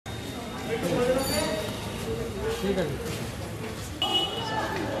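A crowd of people chatter in the background outdoors.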